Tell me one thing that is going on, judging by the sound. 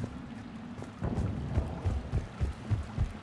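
Heavy boots thud quickly on a metal floor.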